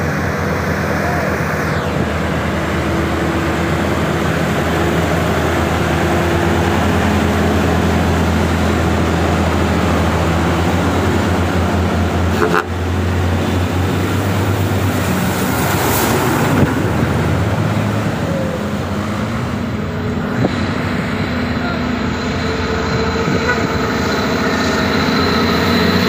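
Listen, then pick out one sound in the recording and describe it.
Traffic hums steadily outdoors.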